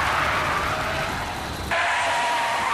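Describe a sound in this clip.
A man screams loudly and close by.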